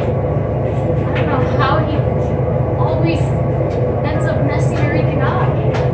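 A young woman speaks casually, close by.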